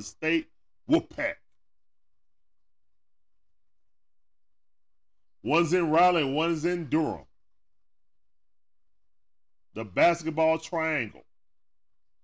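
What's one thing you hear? A man speaks into a microphone with animation, in short bursts.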